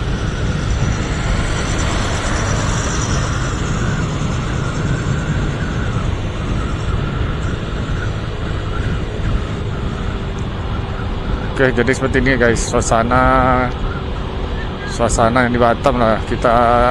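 Wind rushes past a moving motorbike.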